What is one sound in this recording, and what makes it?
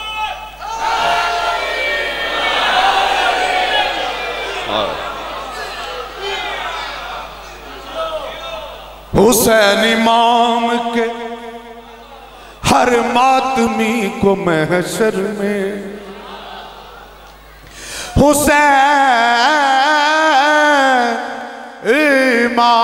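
A man sings with passion through a microphone.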